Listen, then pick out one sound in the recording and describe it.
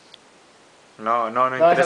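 A young man speaks loudly and cheerfully close by.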